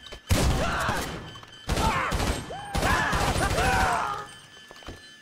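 A gun fires loud bursts of shots.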